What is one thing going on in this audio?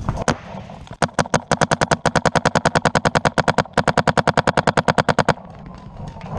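A paintball gun fires a rapid stream of shots.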